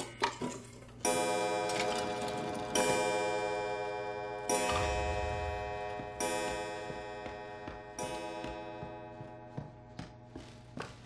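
A grandfather clock strikes loud, ringing chimes that slowly fade.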